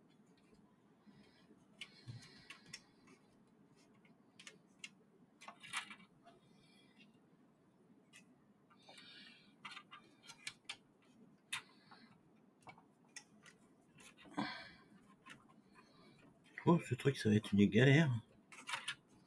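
Plastic parts click and rattle as hands handle a device.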